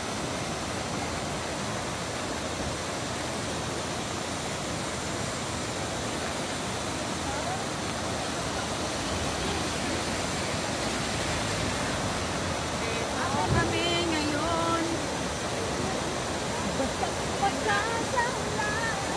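Waterfalls rush and roar steadily down a hillside.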